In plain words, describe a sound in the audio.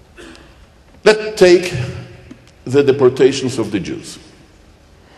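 An older man speaks calmly into a microphone, heard through a loudspeaker in an echoing room.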